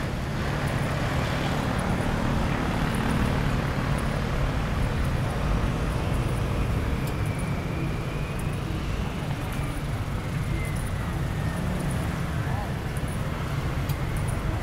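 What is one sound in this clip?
City traffic rumbles steadily outdoors.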